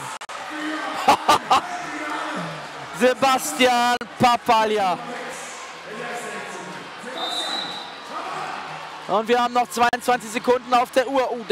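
A large crowd cheers and claps in a big echoing hall.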